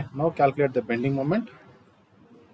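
A man speaks clearly into a microphone, lecturing at a calm pace.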